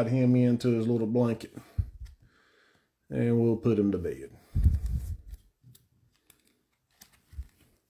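A trading card slides into a rigid plastic holder.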